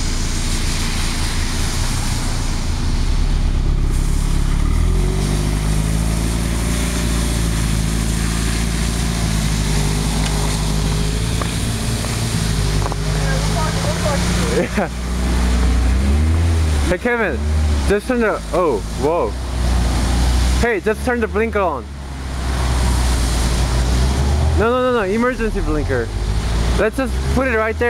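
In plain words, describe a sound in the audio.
A car engine idles and revs.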